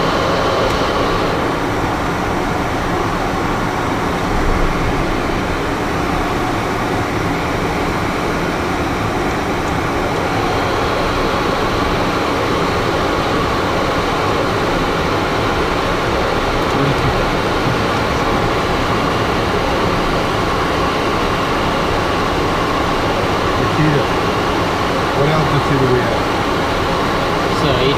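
Air rushes loudly past the aircraft.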